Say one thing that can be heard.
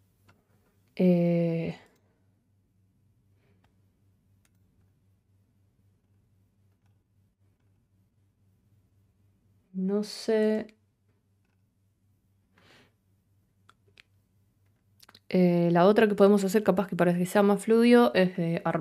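A young woman speaks close to a microphone, in short bursts with long pauses.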